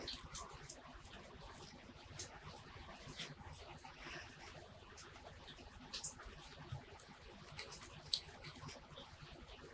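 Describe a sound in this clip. Leaves rustle and twigs click softly as fingers pull at a small shrub.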